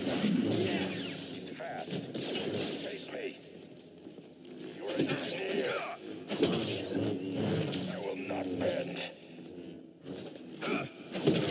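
Laser blasts fire in quick bursts.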